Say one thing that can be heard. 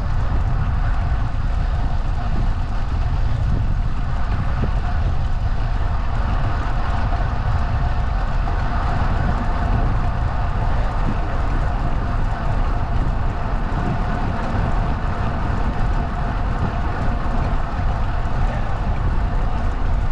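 Tyres hum steadily on smooth pavement.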